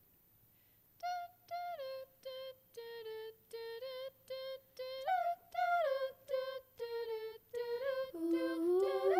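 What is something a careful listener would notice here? A group of young women sings together in short rhythmic bursts in a large hall.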